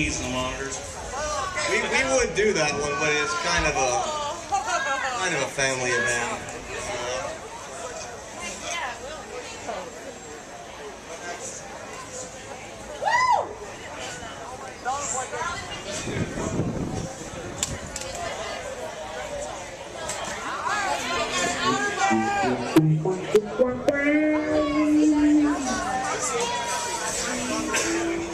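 Electric guitars play loose, scattered notes through amplifiers.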